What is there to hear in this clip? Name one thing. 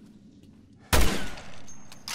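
A gun fires a single loud shot.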